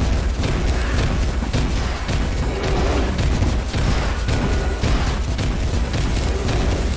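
Game sound effects of magic bolts fire and explode rapidly.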